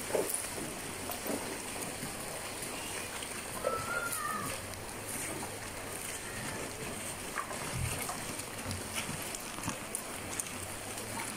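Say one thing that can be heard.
A shallow river flows and babbles steadily over stones.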